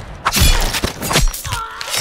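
A knife stabs into a body with a thud.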